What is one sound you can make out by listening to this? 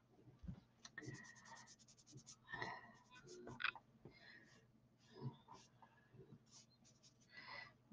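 A pastel stick rubs softly across paper.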